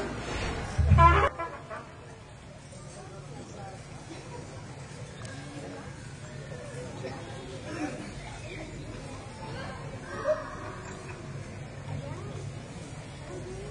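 A crowd of young women and men chatters quietly nearby.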